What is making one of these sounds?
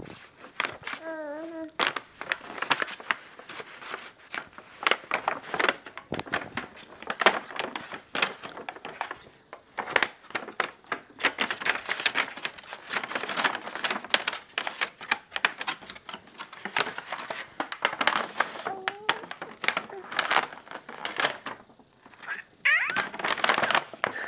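A baby coos and squeals up close.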